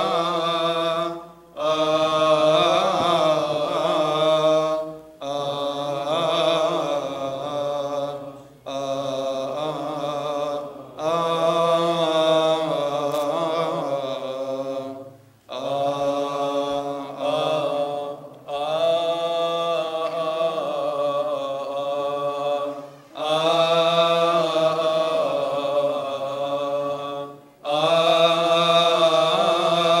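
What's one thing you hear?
A man chants slowly into a microphone, in long held phrases with short pauses, echoing in a large hall.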